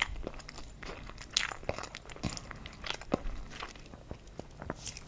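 A woman makes soft clicking mouth sounds close to a microphone.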